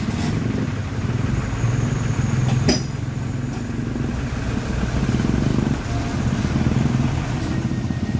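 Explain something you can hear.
A motorcycle engine putters nearby.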